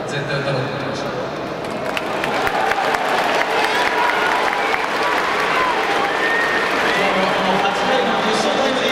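A young man speaks calmly through loudspeakers in a large echoing stadium.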